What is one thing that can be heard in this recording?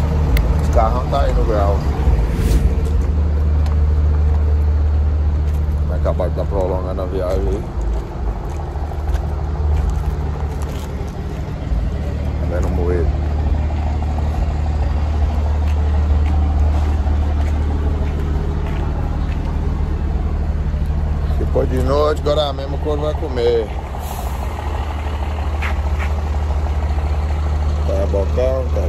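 A truck engine idles with a steady low rumble.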